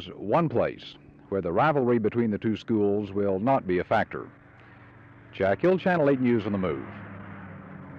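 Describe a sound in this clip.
A man talks calmly into a handheld microphone.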